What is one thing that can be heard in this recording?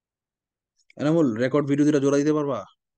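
A man speaks calmly into a microphone on an online call.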